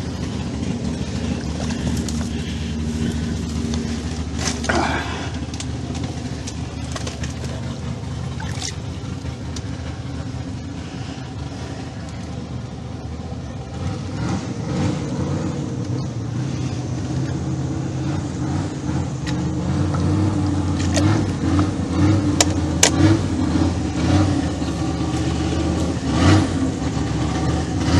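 Leaves and fern fronds rustle and scrape close by.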